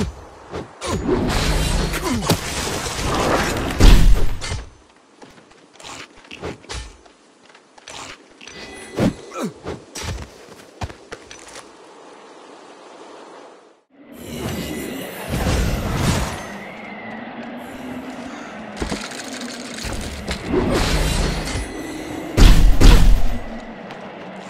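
Magic blasts whoosh and crash loudly in a video game battle.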